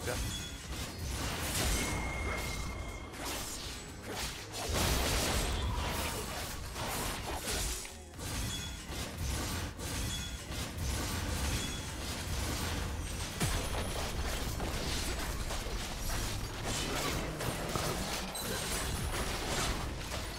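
Game hit sounds clash rapidly.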